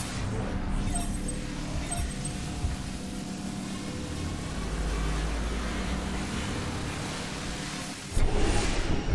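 A magical energy field hums and roars steadily.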